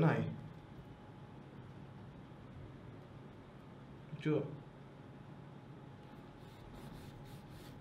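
A knife scrapes and cuts into a watermelon rind.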